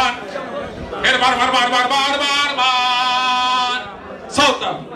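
A young man sings loudly nearby.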